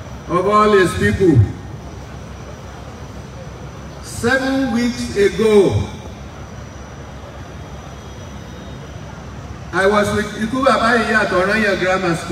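An elderly man speaks in bursts through a microphone and loudspeakers, outdoors.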